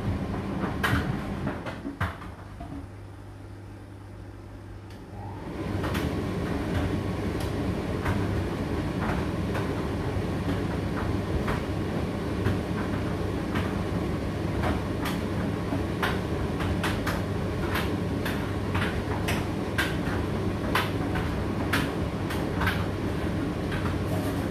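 A condenser tumble dryer hums as its drum turns.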